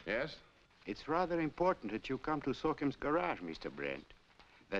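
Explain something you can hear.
An elderly man speaks cheerfully over a telephone.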